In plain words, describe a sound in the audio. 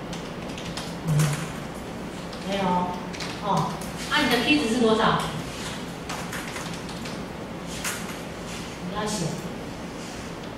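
A woman speaks through a microphone in an echoing room.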